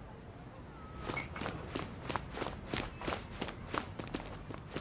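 Quick footsteps tap across a wooden floor.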